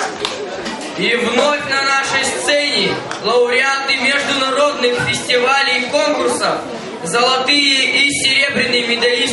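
A boy speaks into a microphone, heard through loudspeakers in a large hall.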